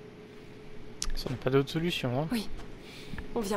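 A woman speaks quietly up close.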